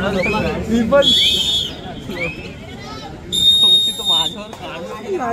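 A referee blows a whistle in sharp blasts.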